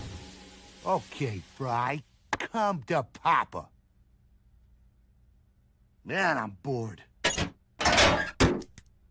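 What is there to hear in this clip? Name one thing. A cartoon robot speaks in a gruff, animated male voice.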